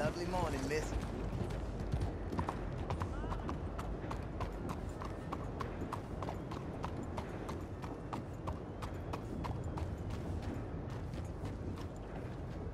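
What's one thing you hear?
Horse hooves clop steadily on a dirt road.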